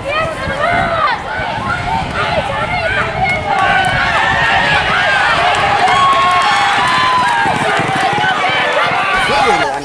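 A crowd of men and women shouts and cheers loudly outdoors.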